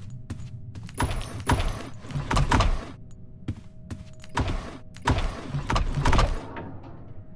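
A wooden drawer slides open with a rattle.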